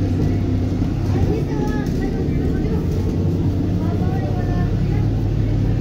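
A large truck idles close by.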